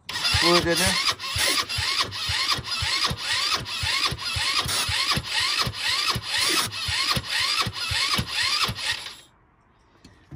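A small engine cranks over and over without starting.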